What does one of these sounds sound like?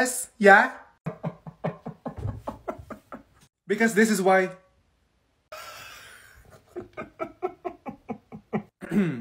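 A young woman giggles in short stifled bursts.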